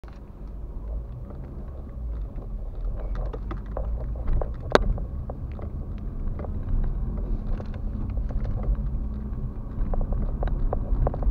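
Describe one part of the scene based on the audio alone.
A car engine hums steadily from inside the cabin while driving.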